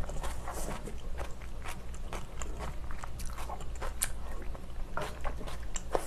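A spoon scrapes and clinks against a pan.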